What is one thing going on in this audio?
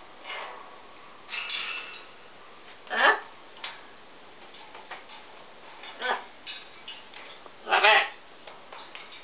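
A parrot squawks loudly in short bursts.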